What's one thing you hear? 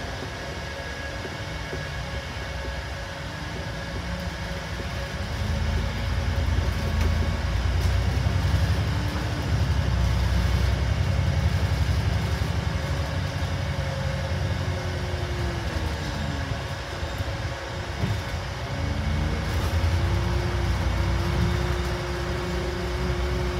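A double-decker bus engine drones and rises in pitch as the bus pulls through its gears, heard from the upper deck.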